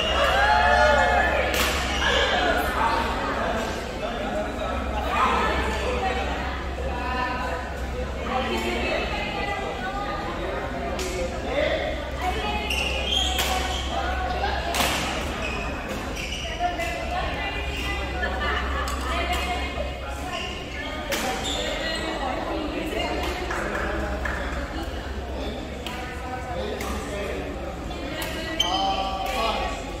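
Voices of a crowd chatter throughout a large echoing hall.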